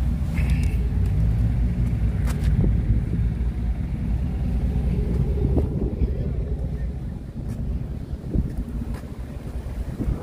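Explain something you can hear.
Footsteps scuff on pavement.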